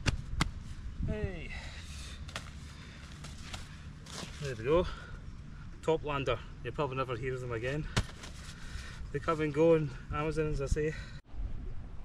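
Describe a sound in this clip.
A man speaks calmly to a nearby microphone.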